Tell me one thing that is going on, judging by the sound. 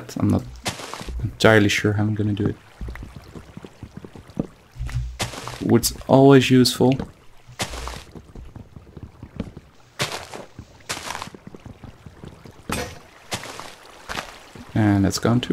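An axe hacks at leafy branches in short, repeated bursts of rustling.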